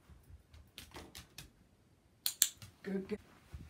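A puppy's paws patter and scrabble on a wooden floor.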